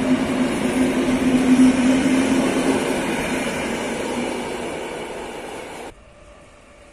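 An electric train rumbles past close by and fades into the distance.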